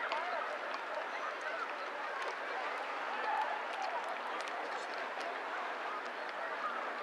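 Small waves lap gently on open water.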